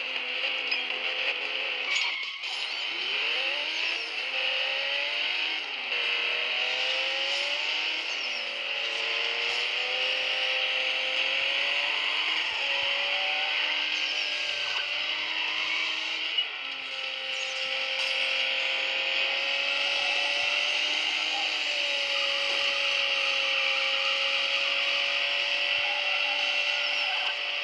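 A sports car engine roars at high speed, its pitch climbing and dropping with each gear change.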